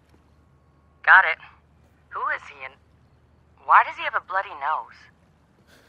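A young man speaks casually and close by.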